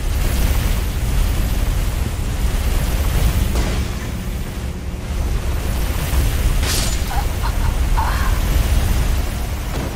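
A sword swings and strikes with metallic clangs.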